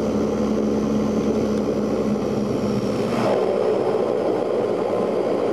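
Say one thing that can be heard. A turboprop engine drones loudly and steadily close by as the plane taxis.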